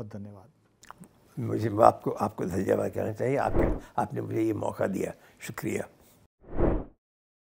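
An elderly man speaks with feeling into a microphone.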